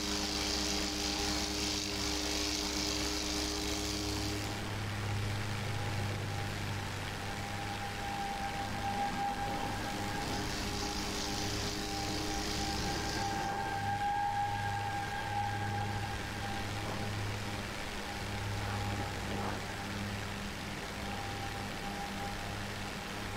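A propeller plane's engine drones steadily throughout.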